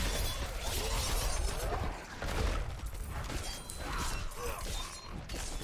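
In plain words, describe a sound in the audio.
Swords slash and strike with heavy hits.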